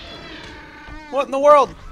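A dinosaur screeches loudly.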